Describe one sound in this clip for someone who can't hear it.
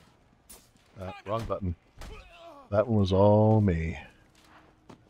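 A man grunts and groans in pain.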